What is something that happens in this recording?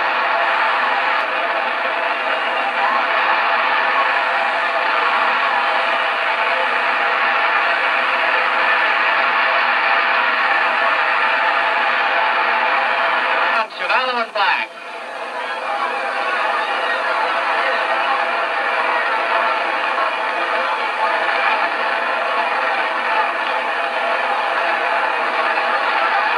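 A large crowd roars and cheers.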